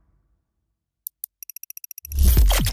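Short electronic clicks tick in quick succession.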